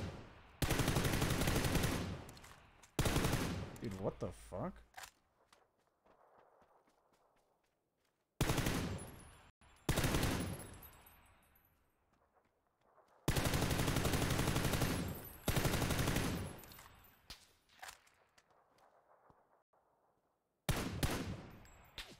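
Rifle shots boom loudly and echo away, one at a time.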